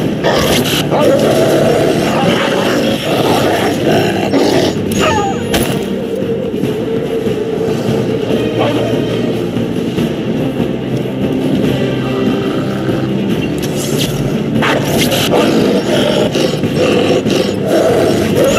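A wolf snarls and growls while fighting.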